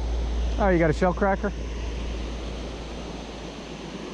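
Water rushes steadily over a weir in the distance.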